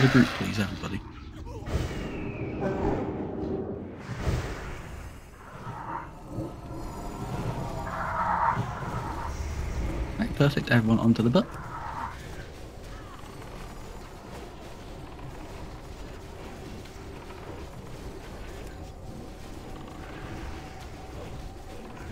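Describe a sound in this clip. Game battle sounds of spells and weapon blows clash.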